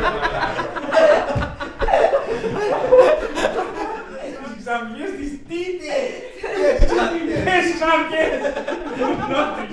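A woman laughs.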